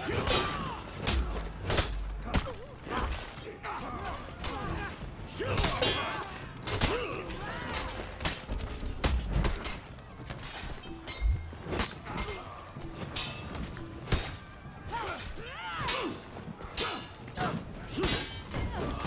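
Warriors shout and grunt as they fight.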